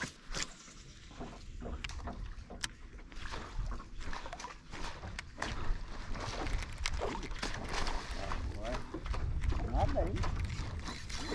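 Wind rumbles across the open water.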